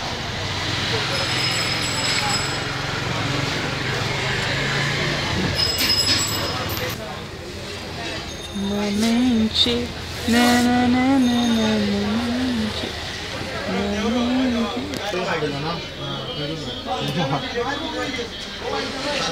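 Street traffic hums in the background.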